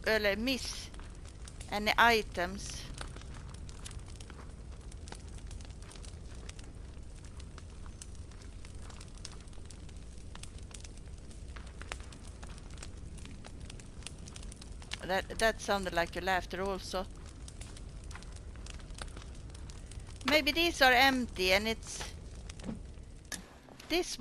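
Footsteps crunch on a rocky floor.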